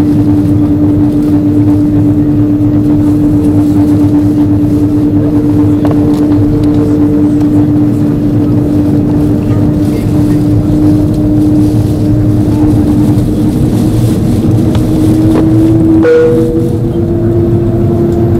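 Jet engines hum steadily from inside an aircraft cabin.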